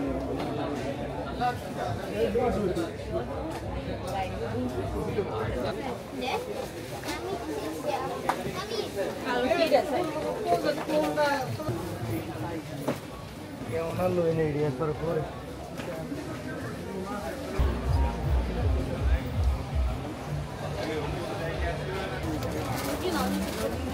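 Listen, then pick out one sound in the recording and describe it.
Many people chatter in a busy indoor crowd.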